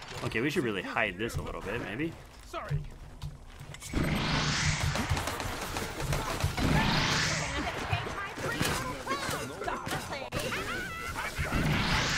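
Game gunfire zaps and bursts.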